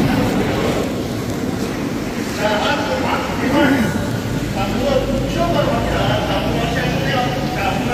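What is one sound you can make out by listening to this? Water pours steadily from pipes into tanks.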